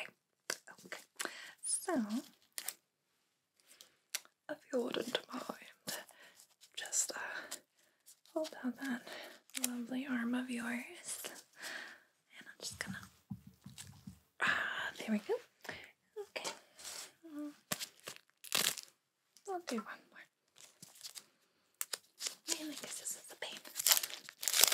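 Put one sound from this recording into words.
Gloved hands rustle and crinkle a paper wrapper close to a microphone.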